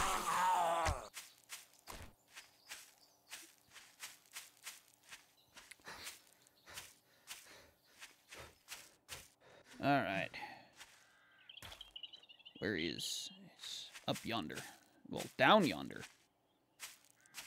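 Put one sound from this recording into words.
Footsteps crunch steadily over rocky ground.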